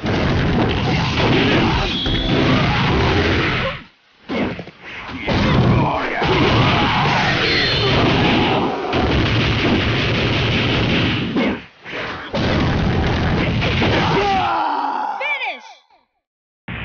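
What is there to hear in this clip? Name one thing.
Punches and kicks land with rapid, heavy thuds.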